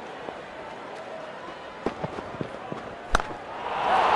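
A cricket bat strikes a ball.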